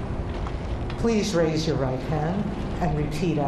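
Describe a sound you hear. A woman speaks calmly into a microphone outdoors.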